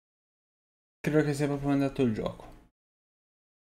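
A man speaks with animation through a close microphone.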